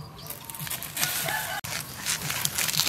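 A knife cuts and scrapes into a bamboo shoot close by.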